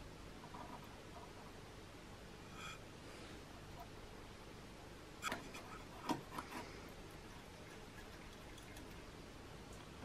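A thin metal pick scrapes and clicks against metal.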